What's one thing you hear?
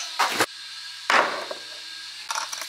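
Ice cubes clatter into a glass jar.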